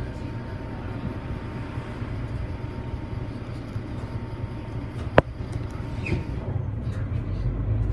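A bus engine rumbles low and steady from inside the vehicle.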